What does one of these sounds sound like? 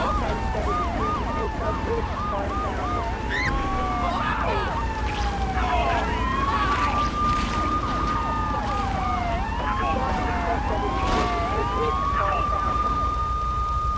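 Police sirens wail and yelp throughout.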